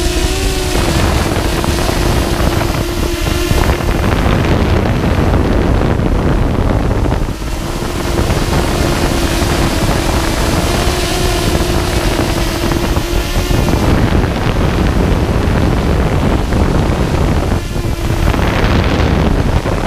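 Quadcopter drone propellers whine and buzz as the drone hovers outdoors.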